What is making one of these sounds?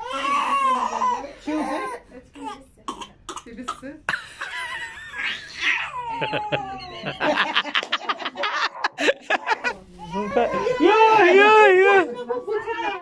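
A baby cries loudly close by.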